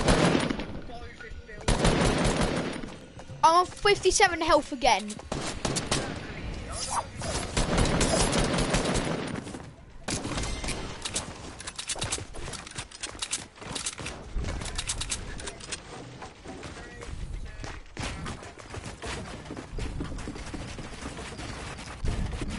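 Game sound effects of rapid building and shooting clatter throughout.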